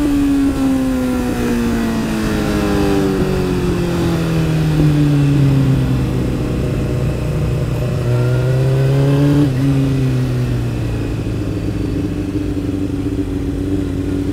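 Wind rushes past a moving motorcycle rider.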